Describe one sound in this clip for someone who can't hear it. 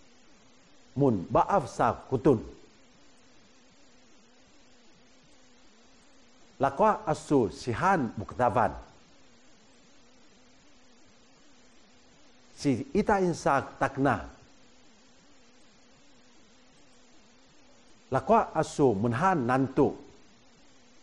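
A middle-aged man speaks short phrases clearly and deliberately close to a microphone, with pauses between them.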